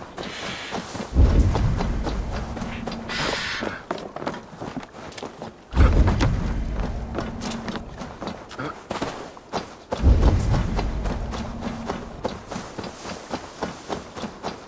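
Footsteps run quickly over grass and wooden planks.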